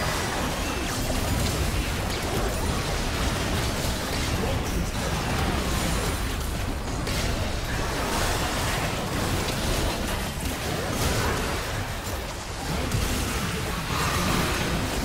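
Video game spell and combat effects crackle, whoosh and clash in a busy fight.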